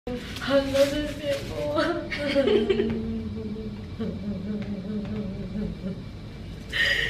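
Another young woman laughs close by.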